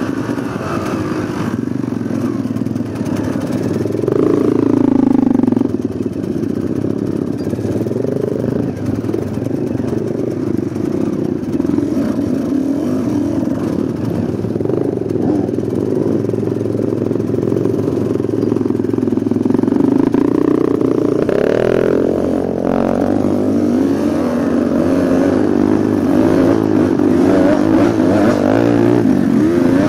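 A dirt bike engine rumbles up close and revs up and down.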